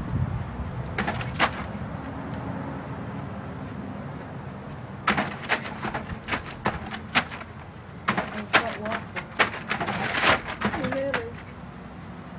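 A plastic sheet crackles and rustles in sharp bursts.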